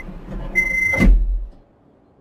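A train door thuds shut.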